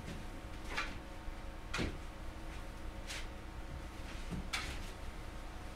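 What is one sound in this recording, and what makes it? Objects knock and clatter nearby.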